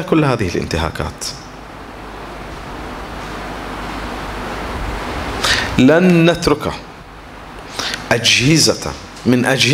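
A middle-aged man speaks forcefully into a microphone, with pauses.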